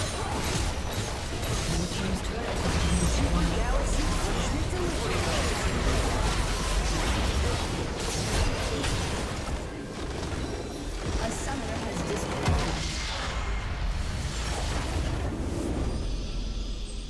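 Magical blasts, zaps and clashes of a video game battle crackle rapidly.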